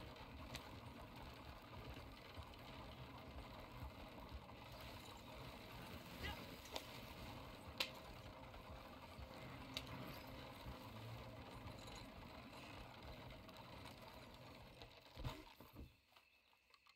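A horse-drawn wagon rolls and rattles over grass.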